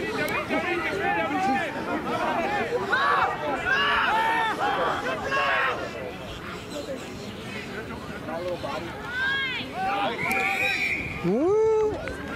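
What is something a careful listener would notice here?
Several men shout and call out across an open field.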